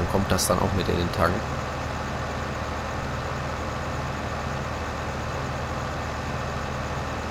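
A tractor engine drones as the tractor drives along.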